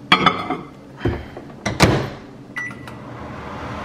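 Microwave buttons beep.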